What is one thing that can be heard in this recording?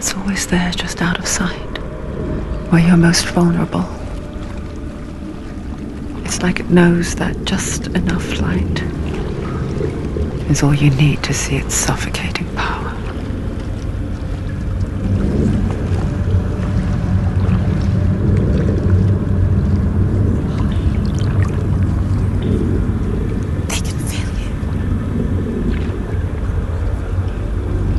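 Water sloshes as a person wades slowly through it.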